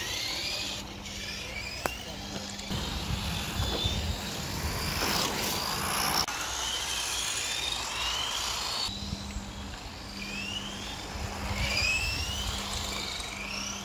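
A remote-control car's electric motor whines as the car speeds by.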